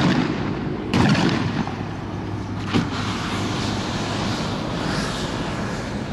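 Sparks hiss and crackle from a burning firework.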